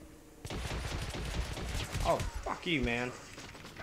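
A pistol fires two shots.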